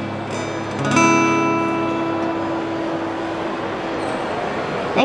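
An acoustic guitar strums a chord that rings out and fades.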